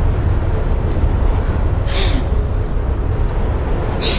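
A large fan whirs with a steady low hum.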